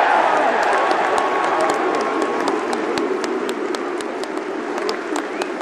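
A large stadium crowd cheers and roars.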